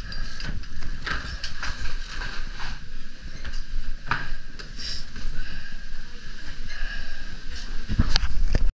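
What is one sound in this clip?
A moving conveyor belt rumbles steadily under skis.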